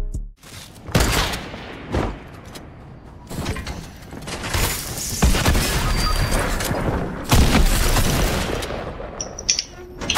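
Video game gunfire and impact effects burst out in loud bursts.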